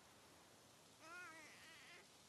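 A toddler giggles and coos close by.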